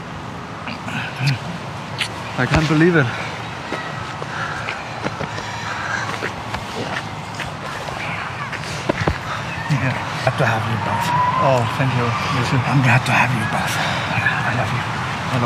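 A middle-aged man speaks emotionally, close by.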